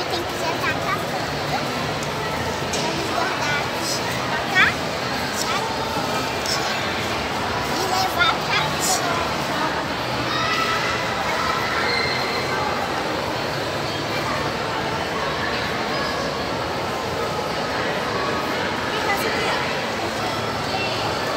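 A crowd of people chatters steadily in the background.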